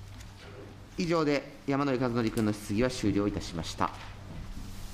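A man speaks briefly into a microphone in a calm, formal voice.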